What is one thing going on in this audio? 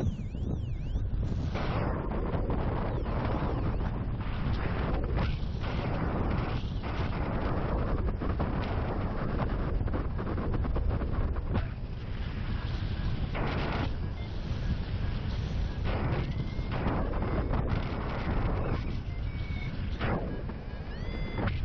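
Strong wind roars and buffets past a microphone.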